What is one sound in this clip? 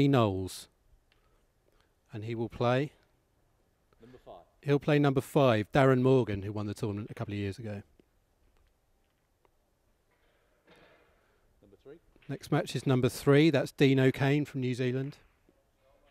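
A man speaks clearly into a microphone, announcing calmly.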